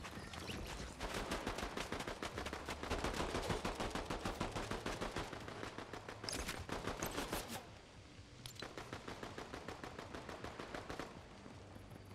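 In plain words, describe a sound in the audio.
Quick footsteps patter in a steady rhythm.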